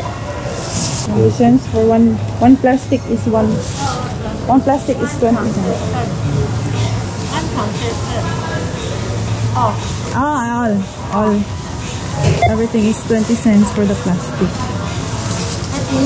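A middle-aged woman speaks nearby.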